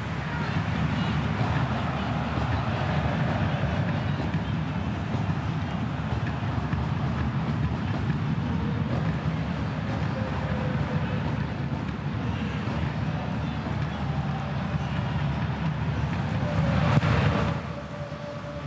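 A large crowd roars and chants steadily outdoors, swelling briefly near the end.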